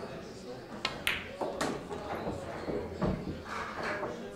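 Pool balls clack together and roll across the table.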